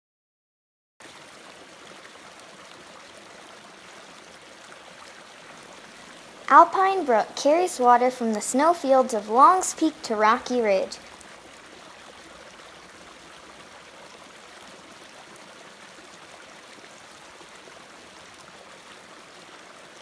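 A small stream trickles and splashes over rocks.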